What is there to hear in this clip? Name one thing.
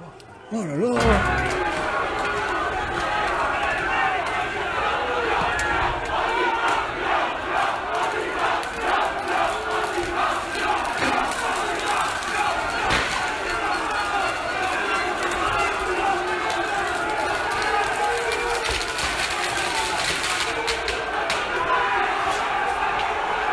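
A large crowd shouts and yells in a street below, heard from a distance.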